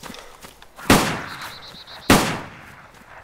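A revolver fires two loud shots.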